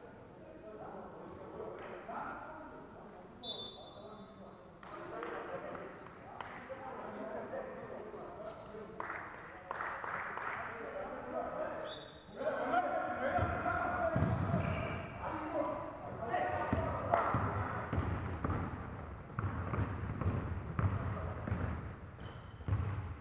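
Players call out to each other across the echoing hall.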